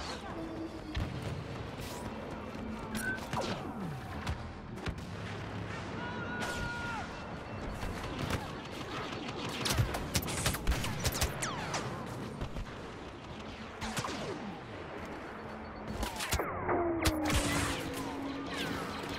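Laser blasters fire in rapid, sharp bursts.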